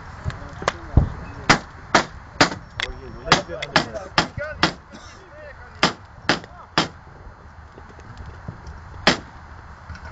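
A wooden mallet knocks sharply several times.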